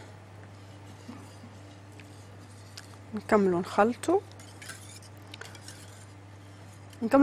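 A whisk clinks against the side of a metal pot.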